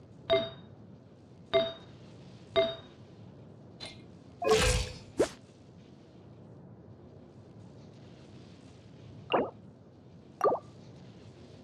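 Game menu buttons click with short chiming tones.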